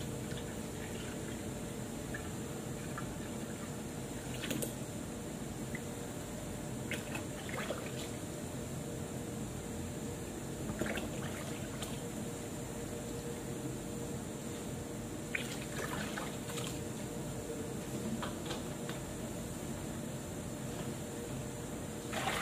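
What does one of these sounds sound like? A man handles a plastic bottle with soft knocks and clicks.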